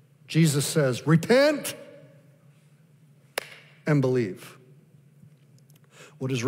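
A middle-aged man speaks with animation through a microphone in a large hall.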